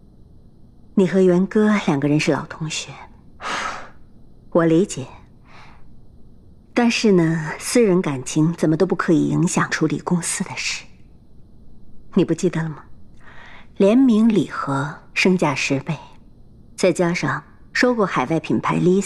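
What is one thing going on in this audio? A middle-aged woman speaks calmly and firmly up close.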